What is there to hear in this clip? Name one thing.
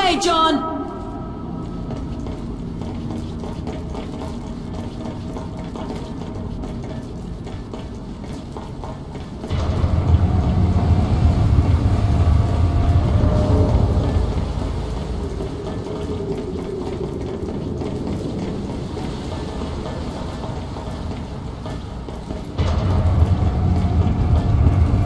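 Boots thud on a hard floor as a soldier runs.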